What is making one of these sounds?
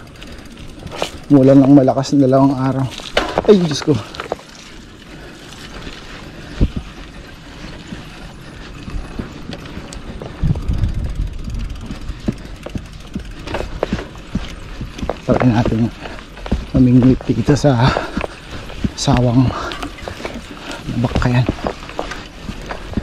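Bicycle tyres roll and bump over a rough dirt track.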